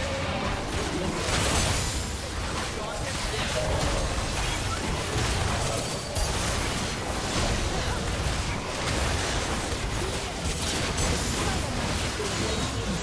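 Magic blasts and impacts crackle and boom in a fast game battle.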